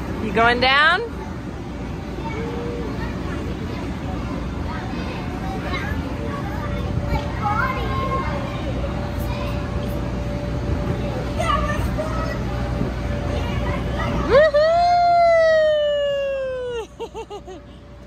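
A young child squeals with delight, close by.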